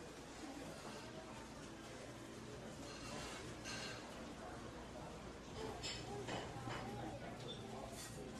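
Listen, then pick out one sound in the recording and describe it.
Several people chat quietly nearby.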